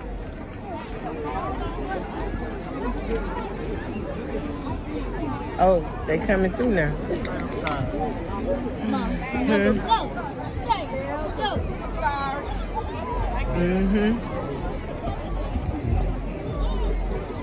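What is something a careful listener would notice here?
Nearby adults talk casually among themselves.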